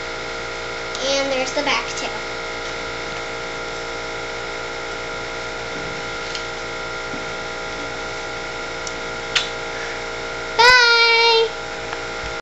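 A young girl speaks close by in a high voice.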